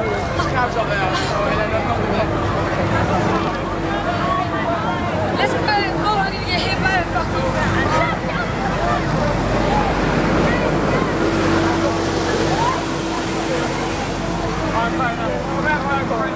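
A young woman talks and laughs loudly, close by, outdoors.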